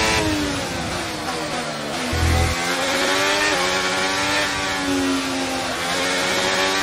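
A racing car engine screams at high revs, dropping in pitch as it slows and rising again as it speeds up.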